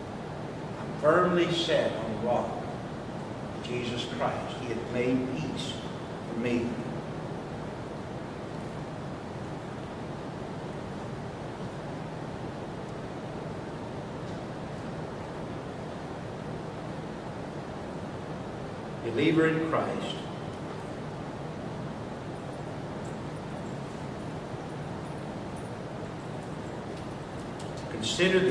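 A man speaks calmly into a microphone in a large room, pausing often.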